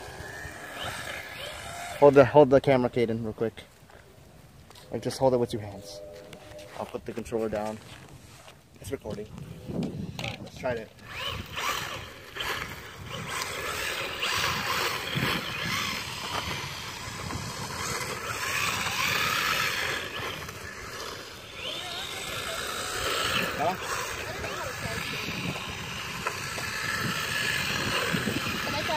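Small electric motors of toy cars whine and buzz as they race and turn.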